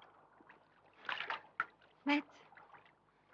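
A woman speaks urgently nearby.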